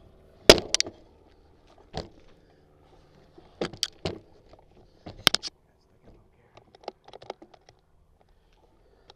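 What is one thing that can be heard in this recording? Bicycle tyres crunch and rattle over a bumpy dirt trail.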